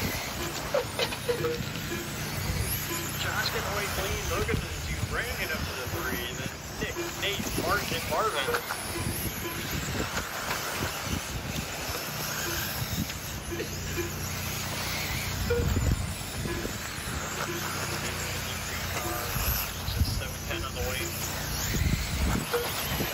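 Model car tyres scrape and skid on loose dirt.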